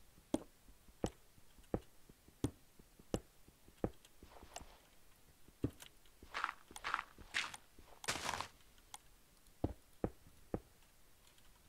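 Footsteps tap steadily on stone.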